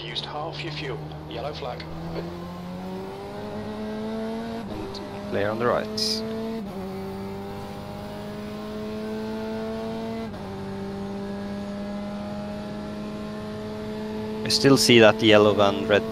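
A racing car engine revs up steadily and drops as gears shift.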